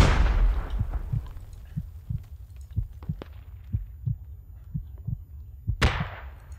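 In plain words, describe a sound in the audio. Footsteps crunch softly on dry ground.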